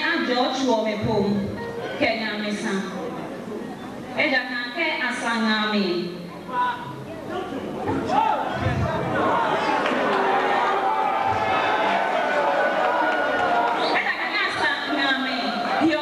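A young woman speaks through a microphone and loudspeakers in an echoing hall.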